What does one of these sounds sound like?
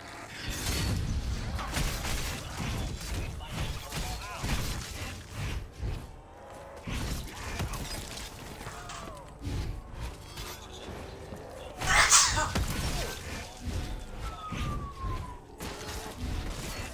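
A fire weapon roars with bursts of flame.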